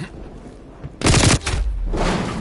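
Rifle shots crack loudly in quick bursts.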